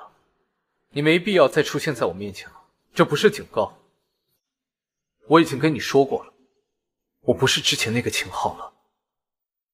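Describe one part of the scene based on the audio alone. A young man speaks firmly and calmly close by.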